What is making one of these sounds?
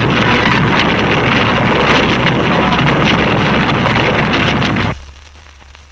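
An explosion roars with a heavy, rumbling blast.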